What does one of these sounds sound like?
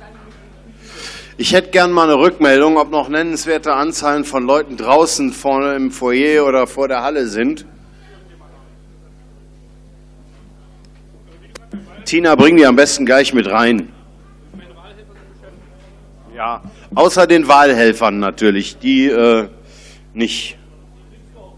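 A man speaks loudly through a microphone in a large echoing hall.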